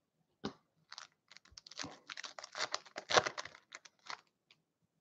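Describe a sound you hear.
A plastic wrapper crinkles as it is torn open and handled.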